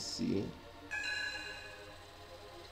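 A computer alert chime sounds once.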